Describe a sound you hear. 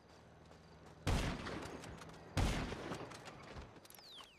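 A rifle fires two loud shots that echo away.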